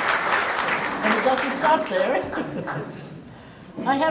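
An elderly woman speaks briefly into a microphone.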